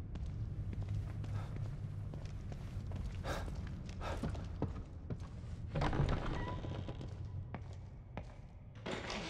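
Slow footsteps thud on a hard floor.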